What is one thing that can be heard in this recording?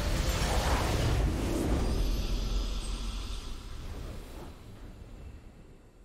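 A game's victory fanfare swells and fades.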